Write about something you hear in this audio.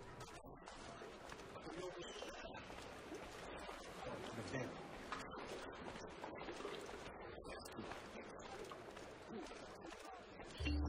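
Footsteps tap on stone pavement.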